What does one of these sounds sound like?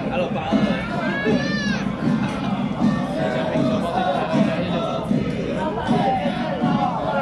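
A crowd of men and women chatters loudly outdoors.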